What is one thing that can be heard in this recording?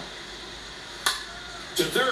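A bat cracks against a baseball, heard through a television speaker.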